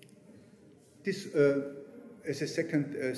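A man speaks with animation, heard through a microphone in a large room.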